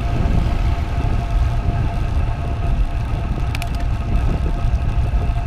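Wind rumbles loudly past a moving bicycle outdoors.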